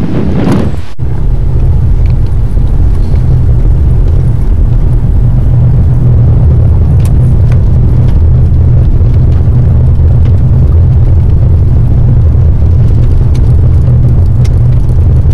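Tyres rumble and crunch on a gravel road.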